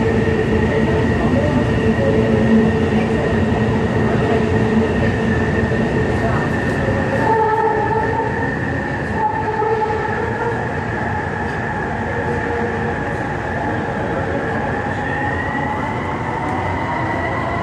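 Traffic rumbles steadily on a road nearby.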